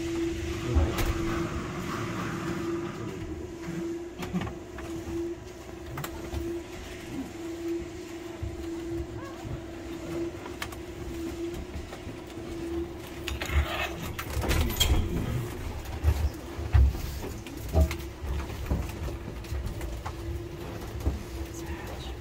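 A cable car hums steadily.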